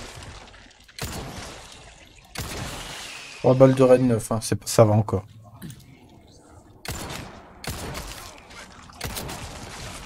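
Gunshots fire loudly, one at a time.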